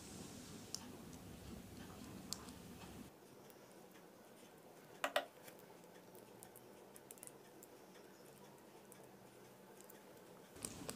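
Small metal parts click and tap as fingers handle them.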